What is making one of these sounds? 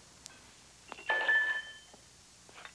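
Glass clinks.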